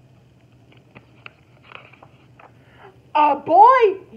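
Pages of a book rustle and flap as they are turned.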